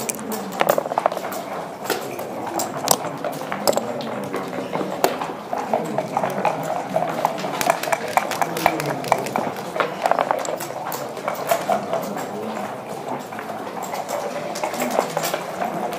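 Game pieces click and clack as they are moved on a wooden board.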